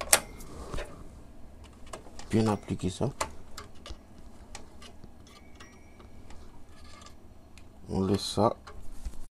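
Small plastic parts click and tap as a hand handles them.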